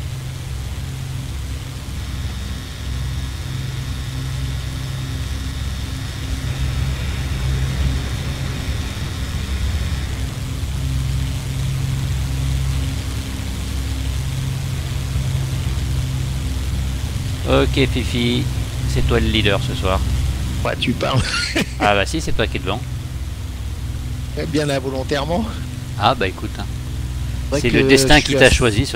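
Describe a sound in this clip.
A propeller plane's engine drones steadily in the cockpit.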